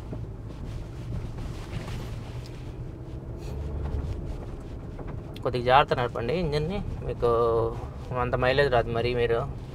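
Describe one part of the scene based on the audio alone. Tyres rumble over a rough dirt road.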